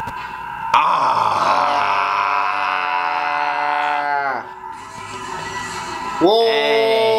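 A second man yells and sings along loudly.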